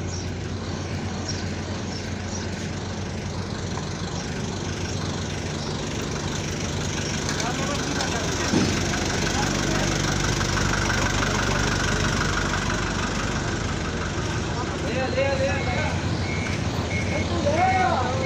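A forklift engine hums steadily nearby.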